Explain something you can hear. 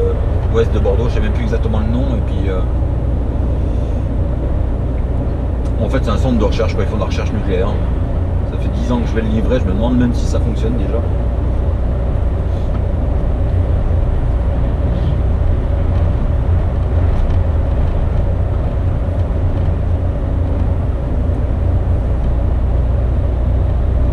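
Tyres roll with a steady hum on the road.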